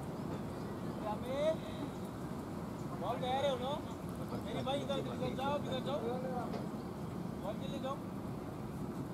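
Men talk casually at a distance outdoors.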